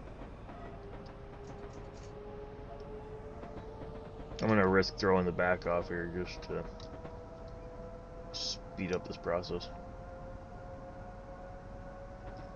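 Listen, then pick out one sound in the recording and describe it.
Train wheels rumble on the tracks.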